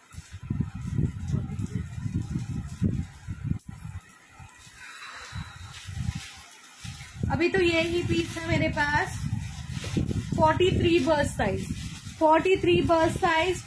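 Cloth rustles as fabric is handled.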